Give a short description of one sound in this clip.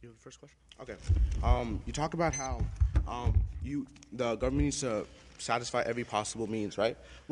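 A man reads aloud from a paper.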